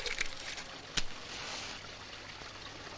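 A match strikes and flares up close.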